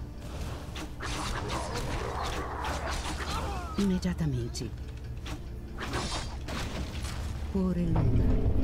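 Battle sound effects from a video game clash and whoosh.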